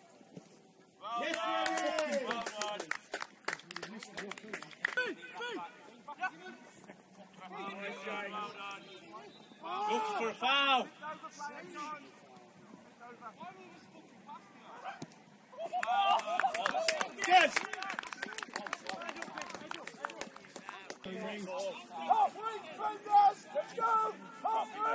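Young men shout and call out outdoors in the distance.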